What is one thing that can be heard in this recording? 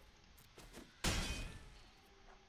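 A game sound effect bursts with a loud whoosh.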